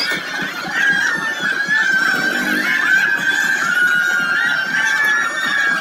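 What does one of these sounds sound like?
A crowd of men sings and shouts loudly outdoors.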